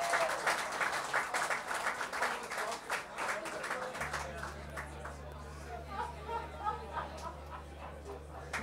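Acoustic guitars strum steadily in a lively rhythm.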